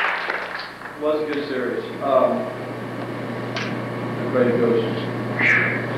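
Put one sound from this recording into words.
An older man talks to an audience in an echoing hall.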